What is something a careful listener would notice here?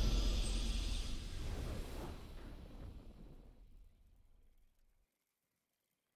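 A triumphant game victory fanfare rings out loudly and fades away.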